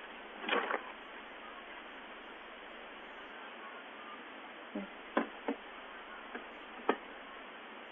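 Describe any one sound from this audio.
A young woman speaks briefly and quietly close by.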